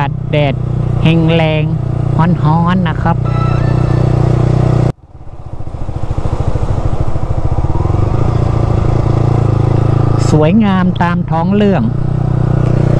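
A motorcycle engine revs up sharply several times.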